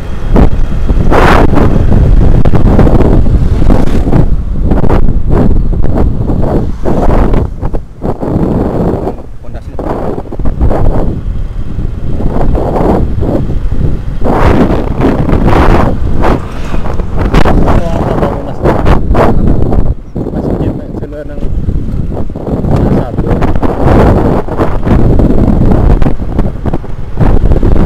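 A motorbike engine hums steadily.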